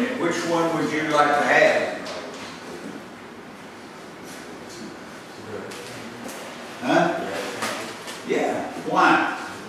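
A middle-aged man speaks calmly, with a slight room echo.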